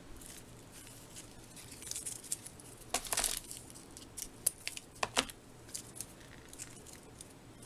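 Paper rustles and crinkles close by under fingers.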